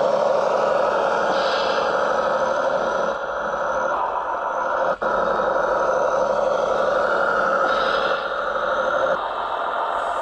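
A small electric motor whines steadily.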